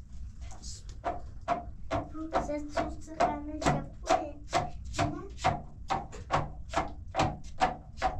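A wooden pestle pounds steadily and rhythmically.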